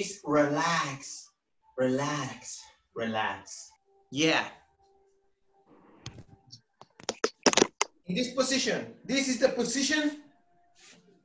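A young man speaks with animation through an online call microphone.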